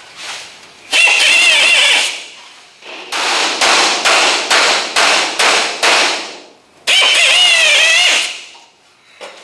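An air tool rattles against metal in short, loud bursts.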